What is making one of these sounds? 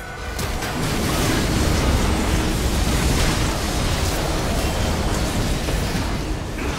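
Magic blasts, crackles and explosions clash in a busy game battle.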